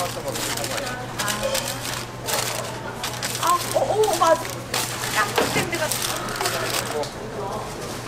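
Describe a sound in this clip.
A paper box is folded and closed with soft scraping.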